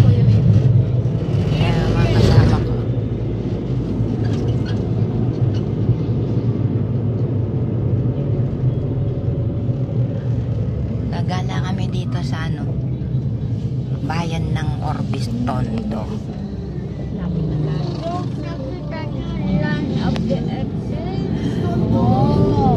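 A van engine hums steadily while driving.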